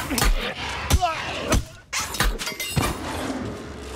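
Weapons clash and strike with sharp, heavy hits.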